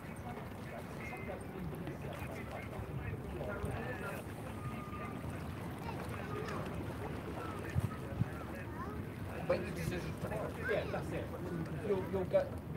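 Water laps gently against a stone wall.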